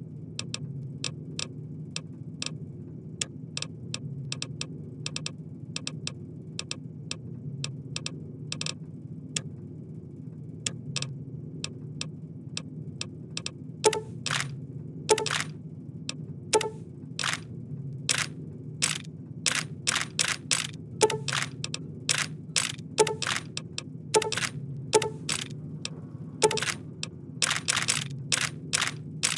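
Short, sharp menu clicks tick quickly and unevenly, growing louder and busier later on.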